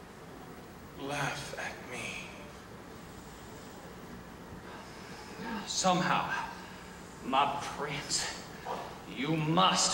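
A man speaks on a stage in a theatrical voice, with a slight echo.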